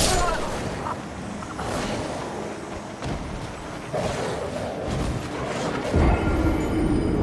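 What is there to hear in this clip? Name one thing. Heavy blows thud and crash in a fight.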